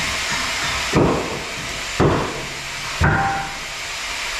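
Metal knocks and clanks loudly as a man works on machinery.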